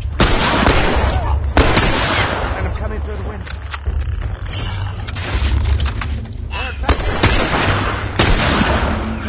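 Rifle shots ring out loudly with echoing cracks.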